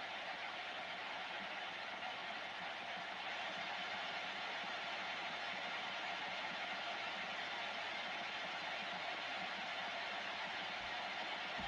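Static hisses steadily from a radio receiver's loudspeaker.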